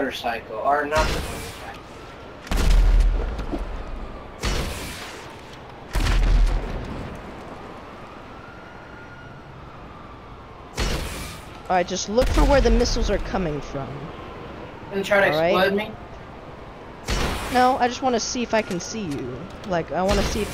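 A rocket launcher fires with a loud whoosh.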